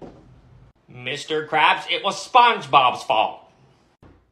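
A young man speaks in a high, mocking voice.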